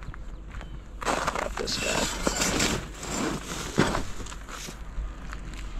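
A metal grate scrapes and rattles against a cardboard box.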